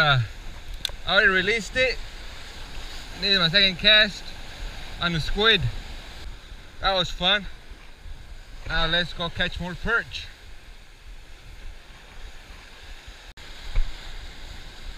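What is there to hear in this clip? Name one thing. Waves crash and wash over rocks close by.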